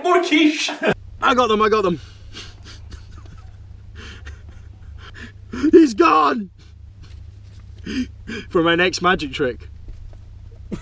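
A man speaks with animation into a microphone, close up.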